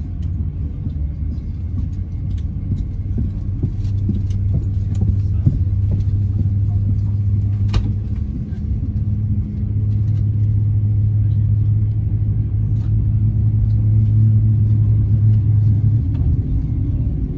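A fingertip taps softly on a touchscreen.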